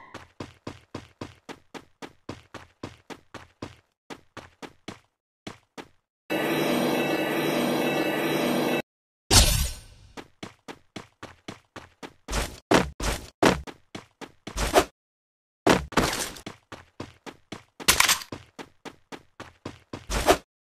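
Footsteps patter quickly and evenly as a game character runs.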